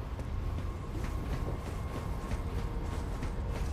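Quick footsteps run across a stone floor.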